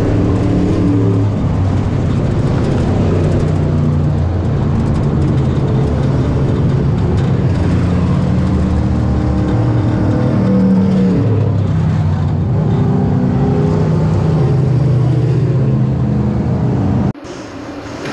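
A race car engine roars loudly, its pitch rising and falling as it revs.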